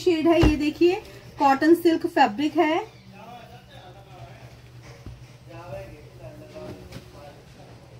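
Cloth rustles as it is folded and unfolded.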